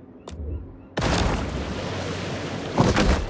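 Water splashes and laps at the surface.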